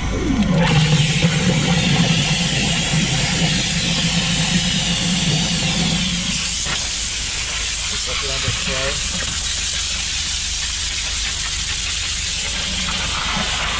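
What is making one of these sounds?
A jet of water sprays hard and hisses against a surface.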